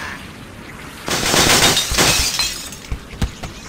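Wooden blocks crash and tumble down.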